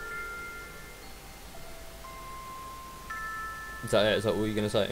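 A music box plays a soft tinkling melody.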